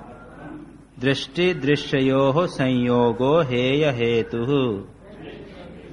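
An elderly man chants loudly in a singing voice.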